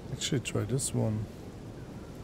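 A man speaks briefly close to a microphone.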